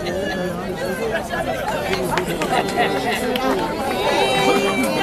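A crowd of older men and women chatters nearby outdoors.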